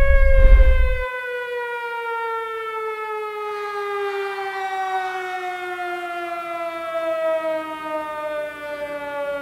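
A droning electronic tone plays from stage speakers and slowly falls.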